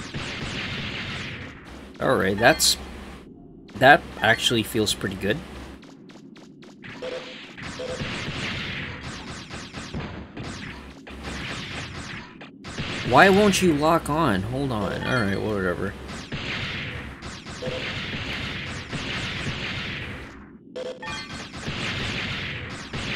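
Game blasts burst with short booms.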